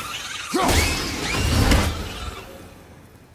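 A thrown axe whooshes back and lands in a hand with a loud rush.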